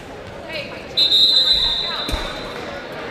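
A whistle blows a long shrill blast.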